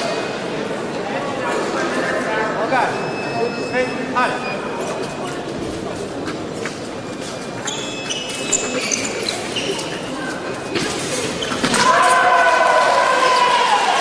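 Fencers' feet stamp and shuffle on the floor.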